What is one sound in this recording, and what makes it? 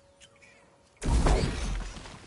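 A lightsaber ignites with a deep hum.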